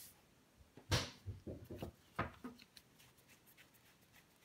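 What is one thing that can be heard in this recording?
Cards rustle and flick as a deck is shuffled by hand.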